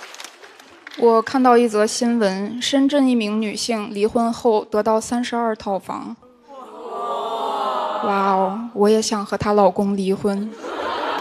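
A young woman speaks animatedly into a microphone.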